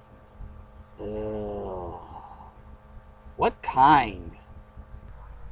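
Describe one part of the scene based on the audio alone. A young man speaks a short question in a puzzled tone.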